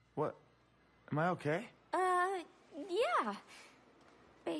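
A young woman speaks softly and breathily.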